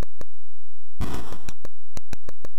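A short hissing crash of electronic noise sounds from a retro video game.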